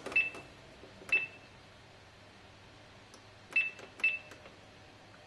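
A kitchen appliance beeps in short chirps.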